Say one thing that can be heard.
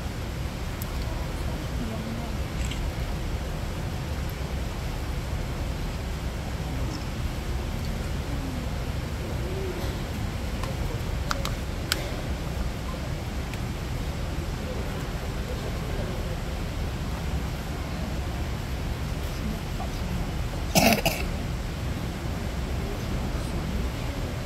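A panda chews and crunches bamboo close by.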